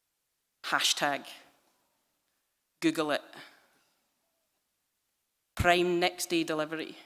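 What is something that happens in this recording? A woman speaks formally into a microphone in a large echoing hall.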